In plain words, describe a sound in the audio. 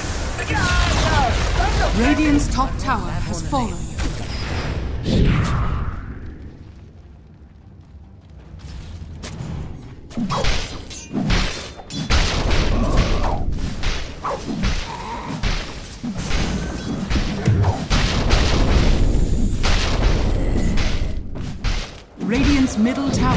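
Spell effects crackle and burst during a game battle.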